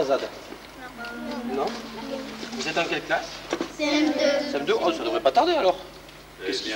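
A man speaks to a group of children.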